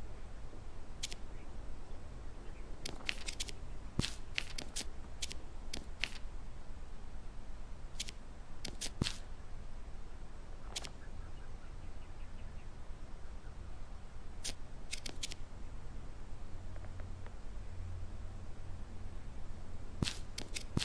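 Short soft menu clicks tick now and then as selections change.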